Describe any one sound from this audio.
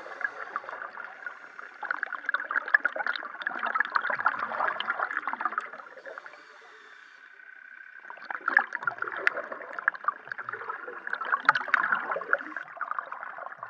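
Hands knock and scrape against a reel underwater, heard muffled through water.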